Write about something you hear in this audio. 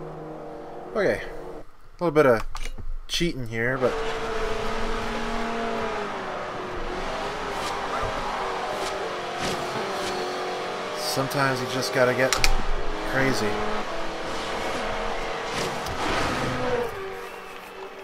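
A racing car engine roars steadily, shifting pitch as it speeds up and slows down.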